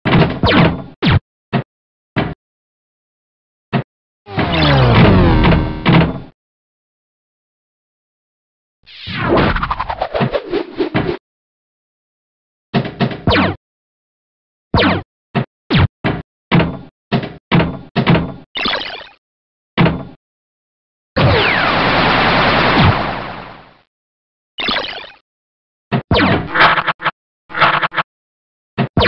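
Electronic pinball bumpers ping and clack in quick bursts.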